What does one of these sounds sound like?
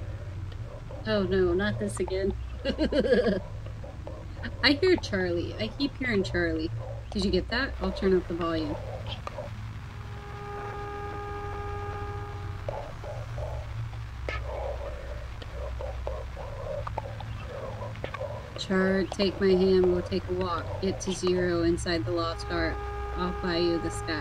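A young woman talks through a desk microphone.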